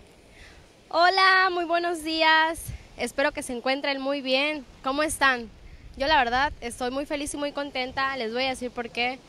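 A young woman speaks clearly and with animation into a microphone close by.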